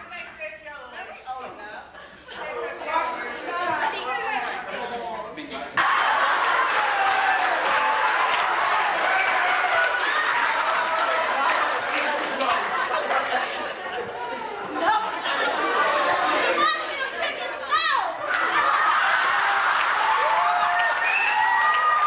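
A man speaks loudly and dramatically in an echoing hall.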